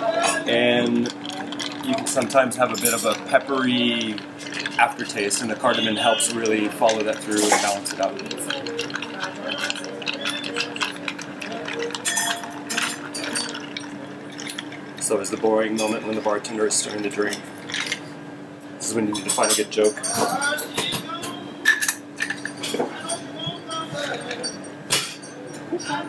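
Ice and liquid clink and splash in a glass pitcher.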